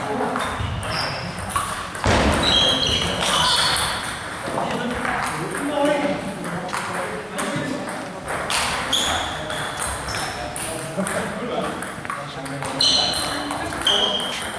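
Shoe soles squeak on a hall floor.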